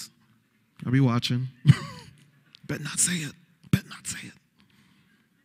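A young man speaks with animation through a microphone.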